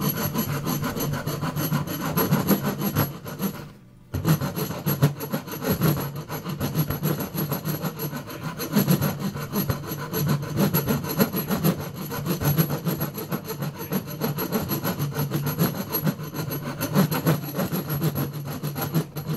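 A knife scrapes and shaves wood.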